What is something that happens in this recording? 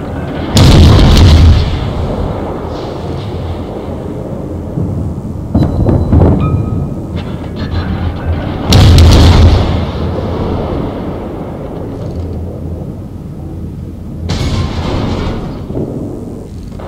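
Heavy naval guns fire in loud booming salvos, each rumbling away.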